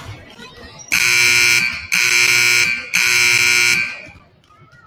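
A loud buzzer sounds three times.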